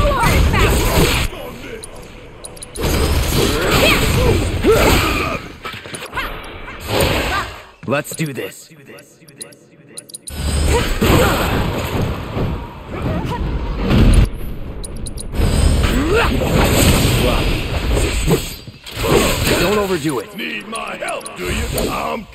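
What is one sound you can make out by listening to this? A sword slashes and clashes against a creature in rapid strikes.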